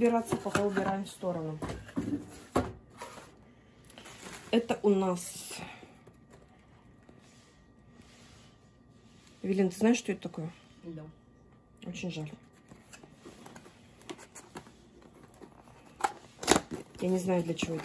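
A cardboard box rustles and bumps as it is handled.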